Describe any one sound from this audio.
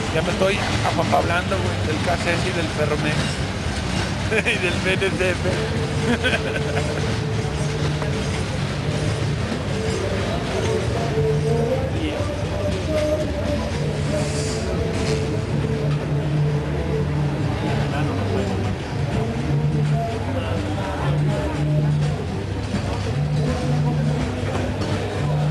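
Steel wheels squeal and screech against the rails.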